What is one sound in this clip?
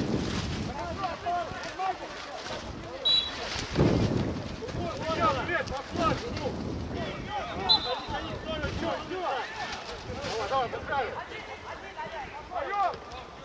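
Men shout to each other outdoors at a distance.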